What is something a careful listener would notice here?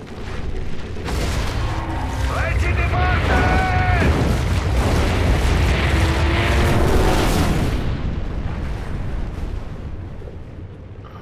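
Sinking wreckage rumbles and groans underwater.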